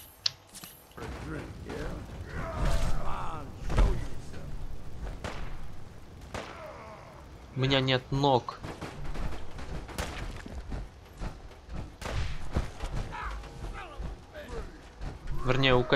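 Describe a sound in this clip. Heavy armored footsteps clank on metal and rock.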